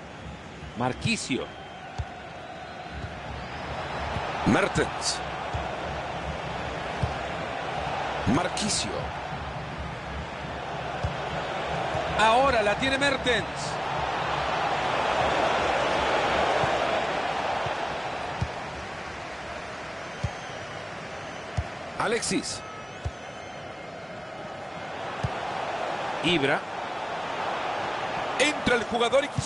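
A stadium crowd murmurs and roars, swelling and fading.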